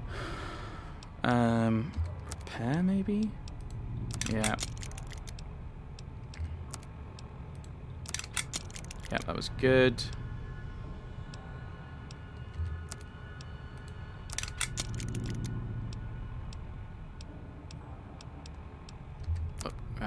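Short electronic clicks tick as a menu is scrolled through.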